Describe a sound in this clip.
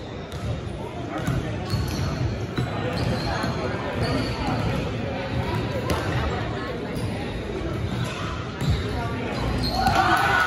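Basketball sneakers squeak on a hardwood court in an echoing gym.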